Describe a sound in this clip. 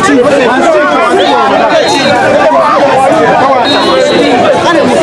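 A crowd of women wail and cry out loudly nearby.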